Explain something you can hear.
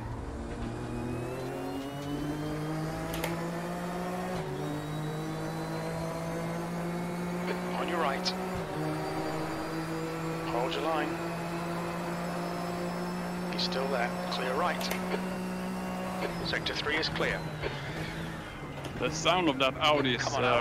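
A race car engine drones steadily, shifting pitch as it changes gear.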